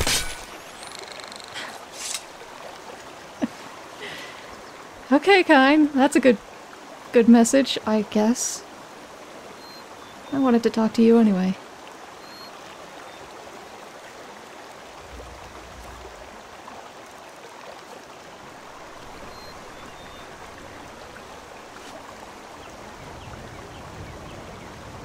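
A stream rushes and splashes over rocks.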